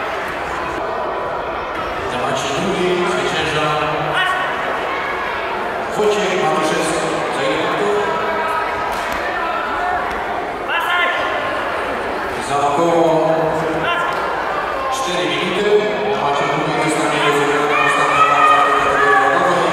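A crowd of children and adults shouts and cheers in a large echoing hall.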